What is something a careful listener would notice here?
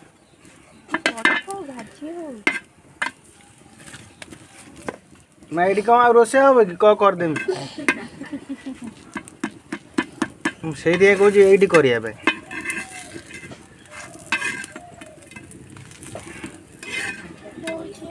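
A metal spatula scrapes and taps against an iron pan.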